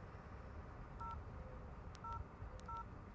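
A mobile phone beeps in short electronic tones as its keys are pressed.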